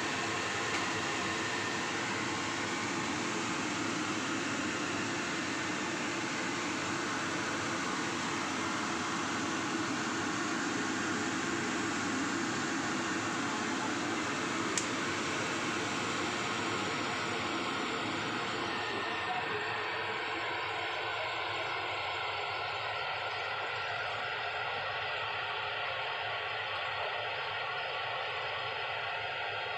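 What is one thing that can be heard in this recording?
Battered banana slices sizzle and crackle in hot oil in a pan.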